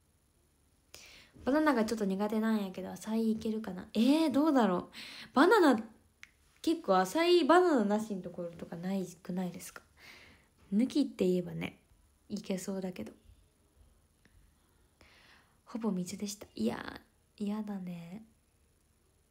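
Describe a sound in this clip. A young woman talks calmly and close up, in short bursts with pauses.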